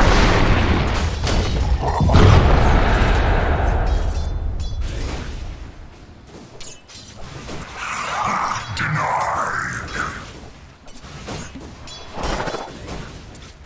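Magic spells roar and crackle in a fight.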